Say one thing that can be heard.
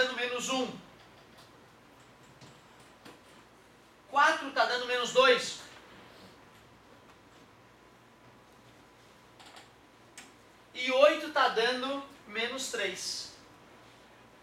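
A young man speaks calmly in short bursts, heard close by.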